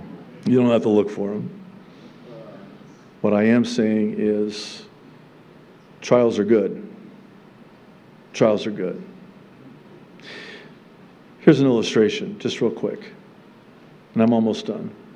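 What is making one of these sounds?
A middle-aged man speaks into a microphone in short, emphatic phrases with pauses between them.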